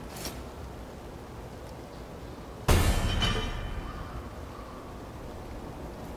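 A gun's metal parts clack as it is handled.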